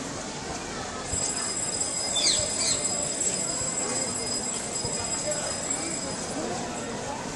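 A crowd murmurs in the distance outdoors.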